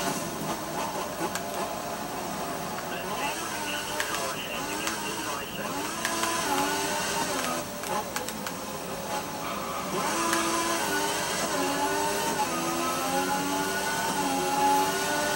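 A racing car engine revs up and down as gears change.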